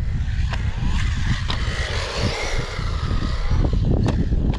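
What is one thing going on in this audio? A small remote-control car's motor whirs as the car drives across the track.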